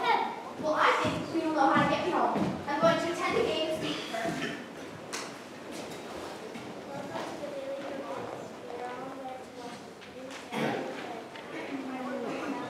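A young girl speaks loudly in a large echoing hall.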